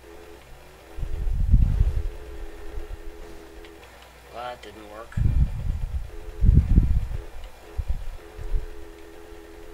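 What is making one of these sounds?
A motorbike bumps and thuds over rough ground.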